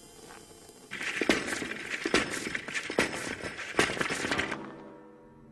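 Glass panes shatter and crash.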